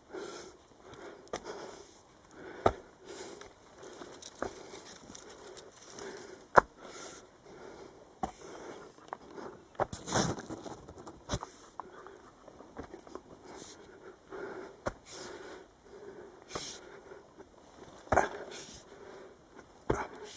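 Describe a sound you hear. Footsteps crunch and scuff on a dirt path.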